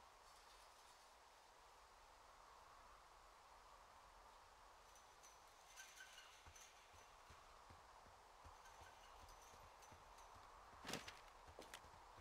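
A paper map rustles as it is handled.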